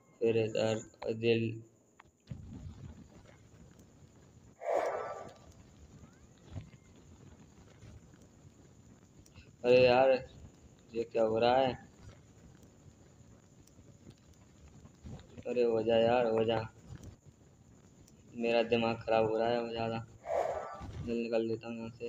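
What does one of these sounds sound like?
A torch flame crackles and hisses steadily.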